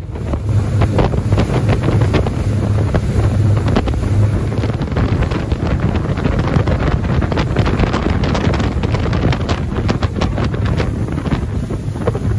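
A boat engine roars steadily at speed.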